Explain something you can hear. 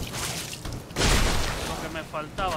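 A sword clashes with a heavy impact.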